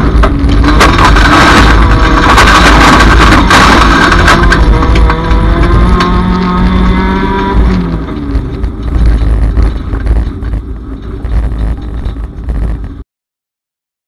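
A car body bangs and clatters over rough ground.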